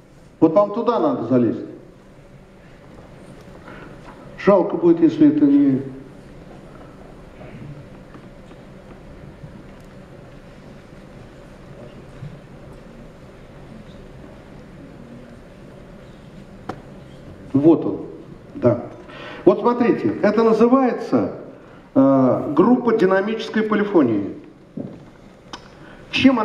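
An elderly man speaks into a microphone through a loudspeaker in a large hall, pausing at length between phrases.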